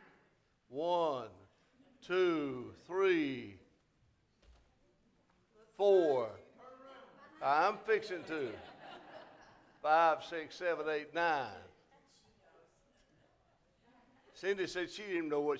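An elderly man speaks slowly through a microphone in an echoing hall, with long pauses.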